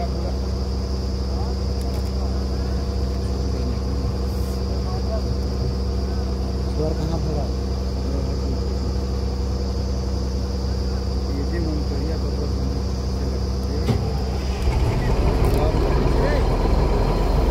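A diesel drilling rig engine drones steadily outdoors.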